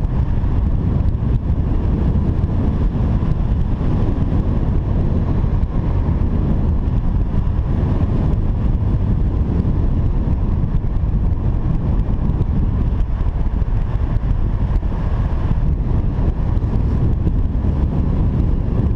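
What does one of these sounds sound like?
Strong wind rushes and buffets loudly, as if outdoors high in the air.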